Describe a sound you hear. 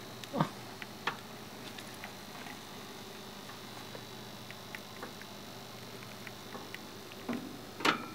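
Small animals scratch and rustle in dry wood shavings close by.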